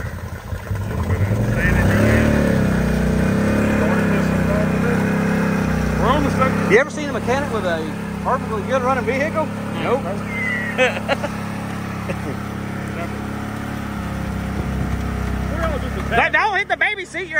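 An engine revs and then runs steadily, close by.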